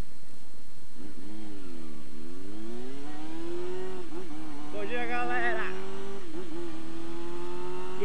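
A motorcycle engine revs up and down as it accelerates.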